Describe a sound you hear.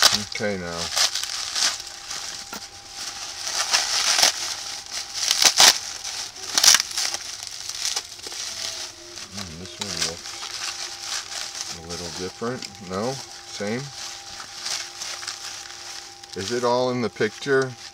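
Plastic bubble wrap crinkles and rustles loudly as hands unwrap it.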